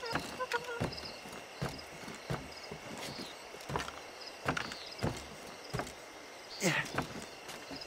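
Hands and feet scrape and knock on a wooden wall while climbing.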